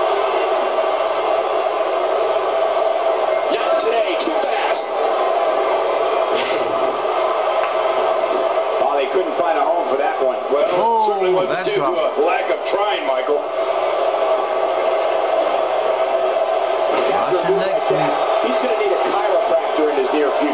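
A large crowd cheers and roars steadily in a big hall.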